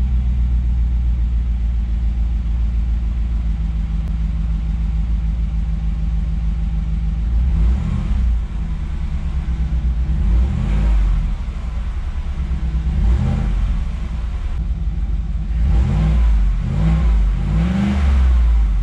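A car engine idles with a deep, steady rumble from the exhaust.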